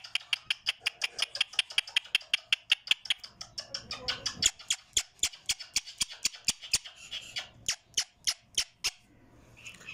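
A parrot clicks its beak rapidly.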